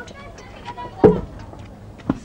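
A metal gate clanks open.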